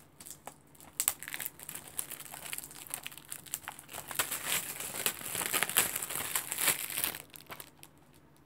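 Plastic wrap crinkles and rustles as it is peeled off a game case.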